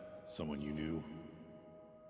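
A man speaks gruffly, close up.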